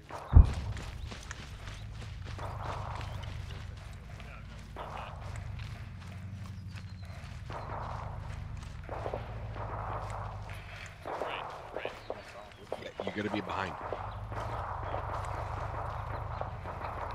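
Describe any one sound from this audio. Boots crunch quickly over dry grass and dirt.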